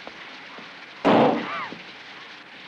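A car door thuds shut.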